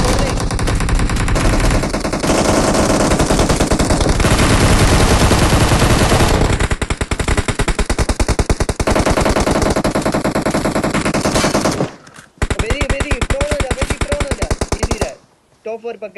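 Rapid automatic gunfire rattles close by.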